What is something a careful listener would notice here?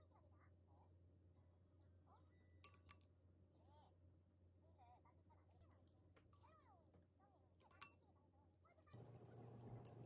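Chopsticks clink against a ceramic bowl.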